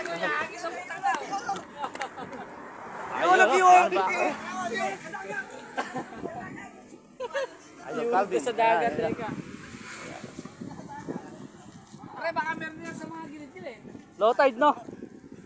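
Young men talk and laugh nearby outdoors.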